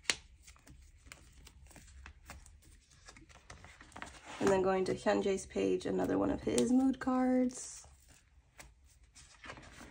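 Plastic sleeves crinkle as cards are handled.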